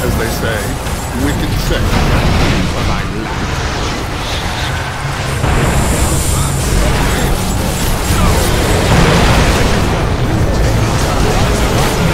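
Game spell effects crackle and boom during a battle.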